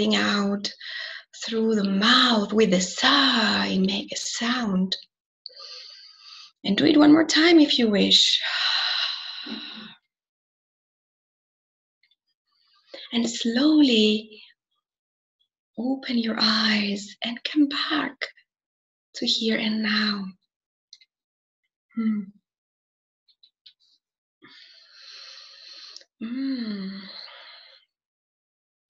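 A young woman speaks calmly over an online call, with pauses.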